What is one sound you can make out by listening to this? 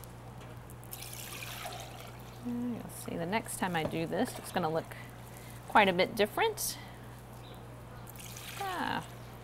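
Liquid pours and splashes into a container.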